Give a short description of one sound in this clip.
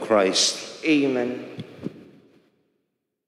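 A man speaks into a microphone, heard through a loudspeaker in a large echoing hall.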